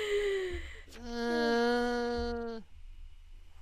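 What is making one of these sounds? A young woman sings a short sustained note into a close microphone.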